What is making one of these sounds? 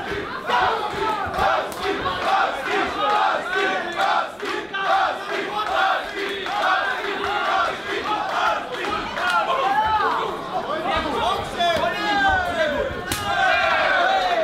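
A crowd shouts and cheers in a large hall.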